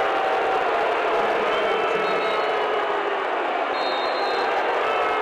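A large crowd cheers and chatters loudly in an echoing arena.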